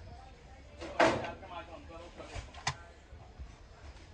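A metal latch clicks open.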